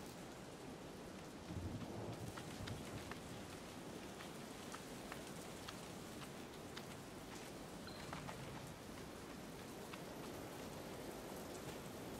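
Soft footsteps patter as a fox runs across hard ground.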